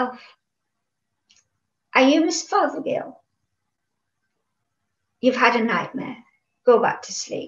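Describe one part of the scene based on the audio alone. An elderly woman reads aloud calmly and close by, with pauses.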